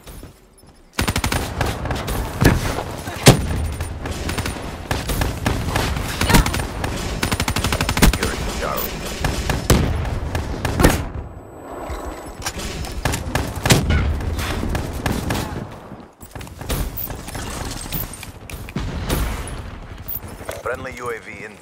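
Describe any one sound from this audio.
Rapid gunfire rattles from close by.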